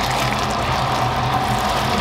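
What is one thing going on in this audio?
A liquid pours into a hot wok and sizzles.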